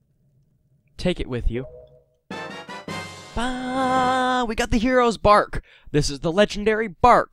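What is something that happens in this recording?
A bright, cheerful fanfare plays loudly.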